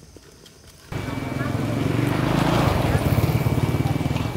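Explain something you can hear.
A motorbike engine rumbles along a road.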